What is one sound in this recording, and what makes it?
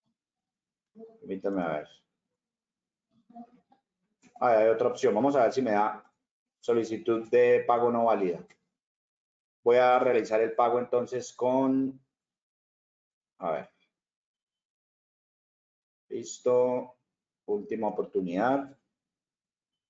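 A man talks calmly, close to a microphone, in short bursts with pauses.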